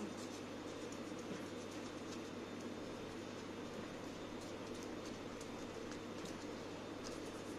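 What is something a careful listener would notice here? Fingers rub and tap softly on a paper plate.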